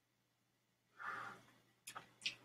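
A man exhales a puff of vapour with a soft breath.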